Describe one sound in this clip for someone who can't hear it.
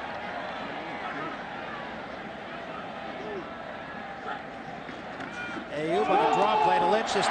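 A large stadium crowd roars, growing louder as a play begins.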